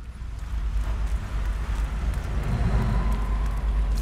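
Footsteps run across a hard floor.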